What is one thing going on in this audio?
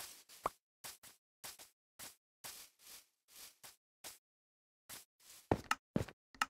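Footsteps rustle softly on grass in an even rhythm.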